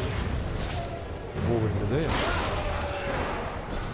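Blades slash and strike with sharp impacts.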